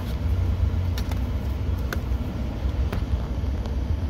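A plastic outlet cover clicks open.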